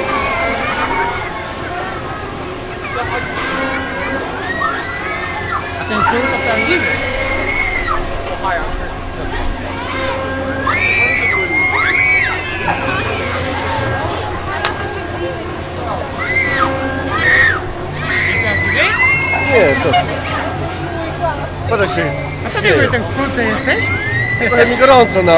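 Riders scream on a swinging fairground ride.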